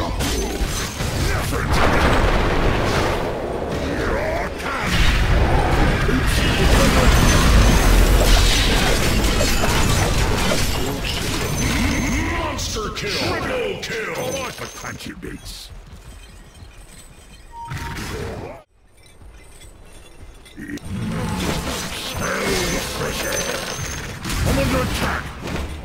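Spell effects and fighting sounds crash loudly.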